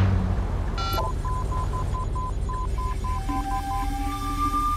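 Electronic beeps chirp from a phone.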